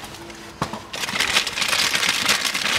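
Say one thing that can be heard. Plastic wrapping crinkles and rustles in hands.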